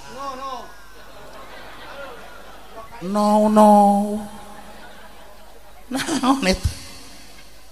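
An elderly man speaks slowly and with feeling into a microphone, heard through loudspeakers in a large room.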